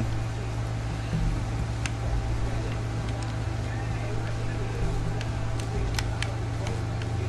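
An aquarium air pump hums steadily.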